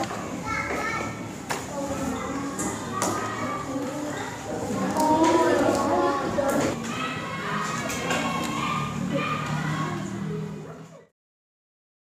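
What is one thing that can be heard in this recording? A woman speaks to children nearby.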